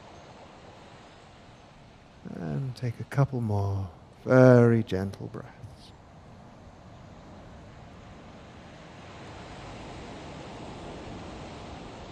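Small waves lap softly against a shore.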